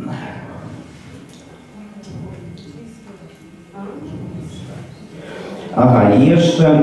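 A crowd murmurs and chatters quietly in a room.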